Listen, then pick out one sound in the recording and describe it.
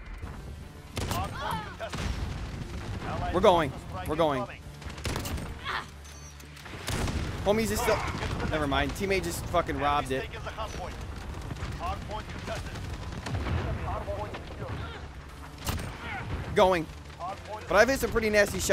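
A sniper rifle fires sharp, loud shots.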